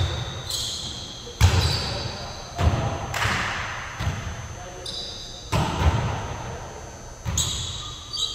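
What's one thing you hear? Shoes squeak on a gym floor.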